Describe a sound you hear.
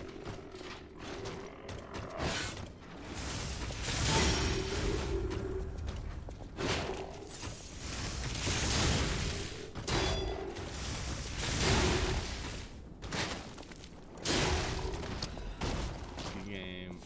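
Metal weapons clash and strike in a loud, fast fight.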